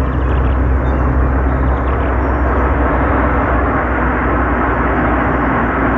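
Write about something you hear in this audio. A car engine hums steadily as the car drives closer.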